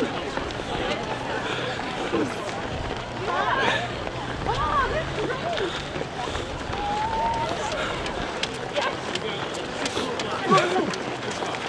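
A crowd of people chatters and calls out nearby.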